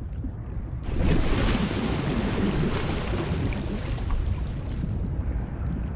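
Water splashes and rushes as a swimmer breaks the surface.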